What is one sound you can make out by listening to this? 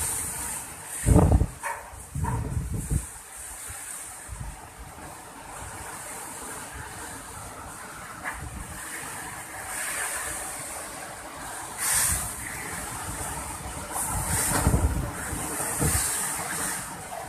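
Strong wind gusts roar in bursts.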